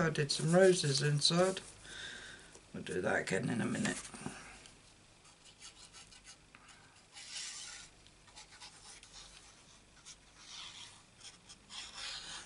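Card stock slides and rustles on a work surface.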